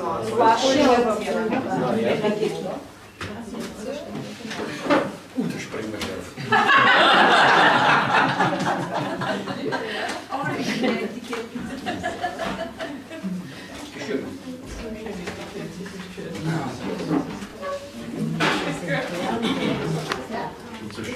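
Men and women chat and laugh nearby in a room.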